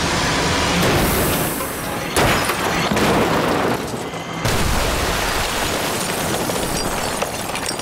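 A car smashes through a brick wall with a loud crash.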